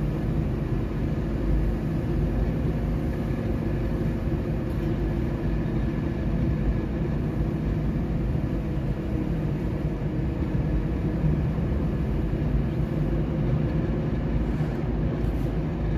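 A car engine hums steadily from inside the car as it drives along.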